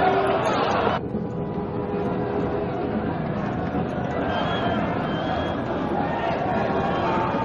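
A large crowd runs and cheers in the distance outdoors.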